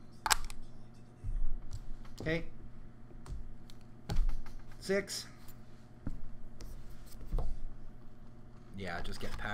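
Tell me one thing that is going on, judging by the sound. Plastic game pieces clack and tap on a table mat.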